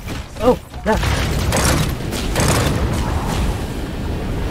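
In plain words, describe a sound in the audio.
Loud explosions boom close by.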